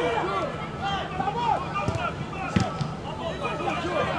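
A football is kicked hard with a dull thump.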